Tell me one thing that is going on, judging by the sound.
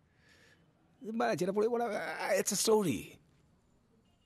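A young man speaks with animation up close.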